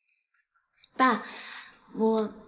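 A young woman speaks earnestly nearby.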